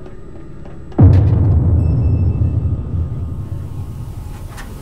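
A heavy metal locker door rumbles loudly and slowly fades.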